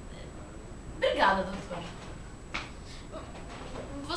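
A young woman speaks nearby with emotion, her voice breaking.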